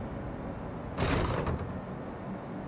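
A blob of gel bursts against a wall with a short rushing hiss.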